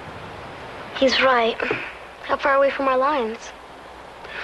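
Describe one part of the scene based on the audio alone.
A young girl speaks with alarm close by.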